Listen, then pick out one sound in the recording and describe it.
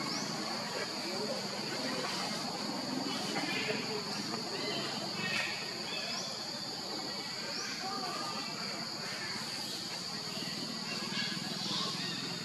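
A baby monkey suckles with soft smacking sounds.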